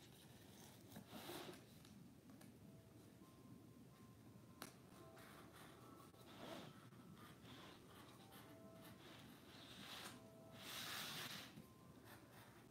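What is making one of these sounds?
Cardboard rustles and scrapes as it is handled.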